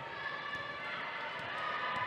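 A basketball bounces on the floor in a large echoing hall.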